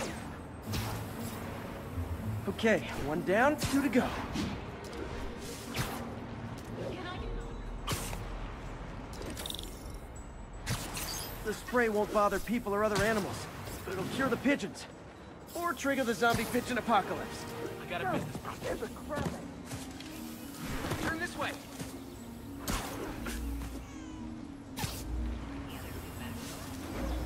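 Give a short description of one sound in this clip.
A web line snaps and whooshes repeatedly as a figure swings through the air.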